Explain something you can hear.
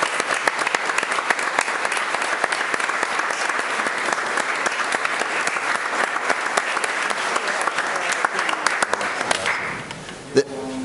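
A crowd applauds loudly in a large room.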